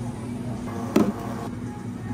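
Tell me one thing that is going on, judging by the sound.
A glass is set down on a metal counter with a clunk.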